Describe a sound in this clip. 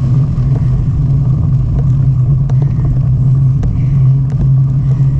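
Tyres roll and crunch over a gravel path.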